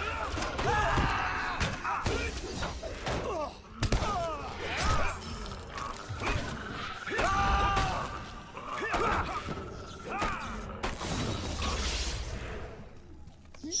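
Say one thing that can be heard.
Swords clash and magic spells whoosh and crackle in a fight.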